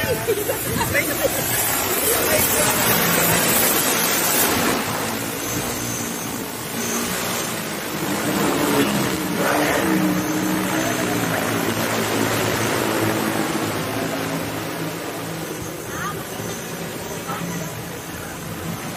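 A large drone's propellers whir and drone loudly overhead.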